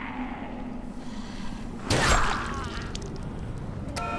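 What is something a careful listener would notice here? A blade strikes flesh with a heavy thud.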